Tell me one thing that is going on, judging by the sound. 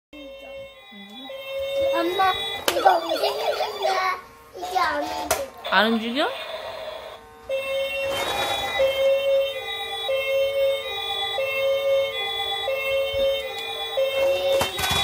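A toy car plays an electronic tune.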